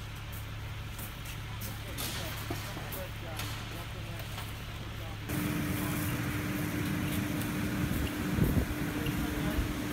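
Firefighters' boots crunch on gravel.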